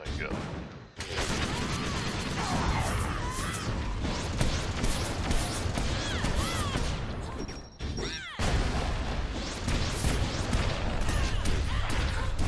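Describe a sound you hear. Magic spells blast and crackle in quick bursts.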